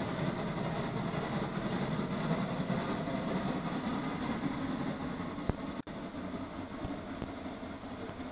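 A steam locomotive chuffs heavily as it pulls away.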